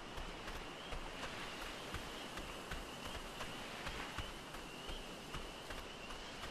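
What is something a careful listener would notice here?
Waves wash steadily against the shore.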